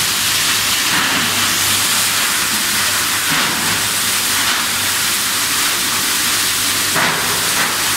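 Plastic containers rattle and crunch as they are crushed.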